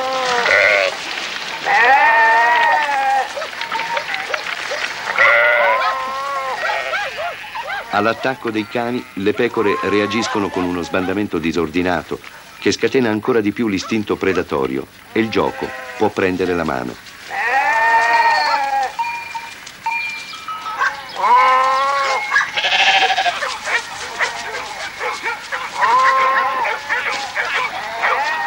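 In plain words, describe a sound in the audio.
A flock of sheep bleats loudly and repeatedly.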